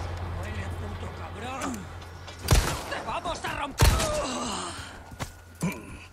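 A man groans and snarls nearby.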